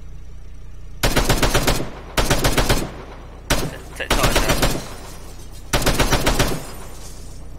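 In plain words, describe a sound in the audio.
A heavy machine gun fires loud rapid bursts.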